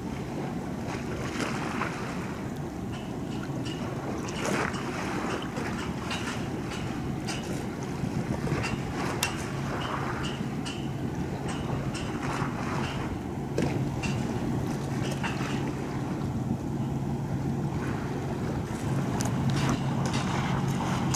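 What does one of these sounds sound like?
A large ship's engine hums low and steady across the water.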